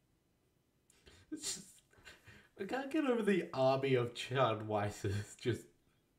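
A young man laughs and speaks close to a microphone.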